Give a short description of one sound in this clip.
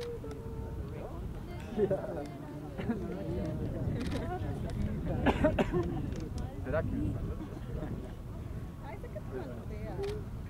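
Young men call out to each other outdoors.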